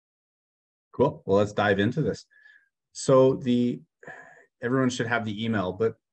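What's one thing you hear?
A young man speaks calmly through an online call.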